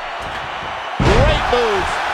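Wrestlers' bodies thud onto the ring mat.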